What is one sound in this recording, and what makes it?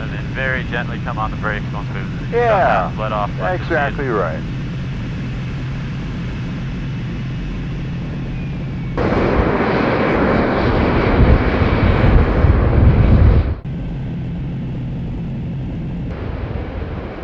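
A jet engine hums steadily inside a cockpit.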